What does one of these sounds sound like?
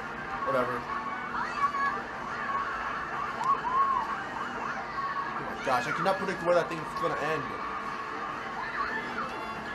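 Video game sound effects chime and whoosh from a television.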